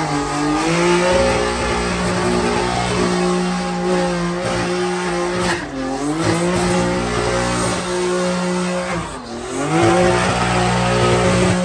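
Car tyres screech as they spin on the road.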